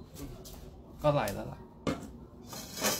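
A metal pot clunks down onto a hard floor.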